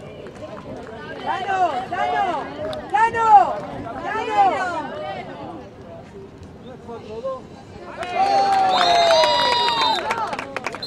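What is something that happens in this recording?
A crowd of spectators cheers and shouts loudly.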